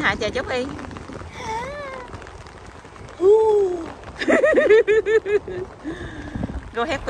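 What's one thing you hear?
A young girl shouts and squeals with excitement close by.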